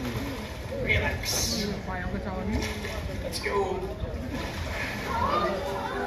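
Water splashes as a man wades through a shallow pool.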